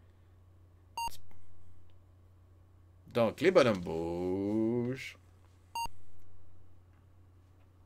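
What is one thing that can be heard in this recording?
A retro computer game gives short electronic beeps.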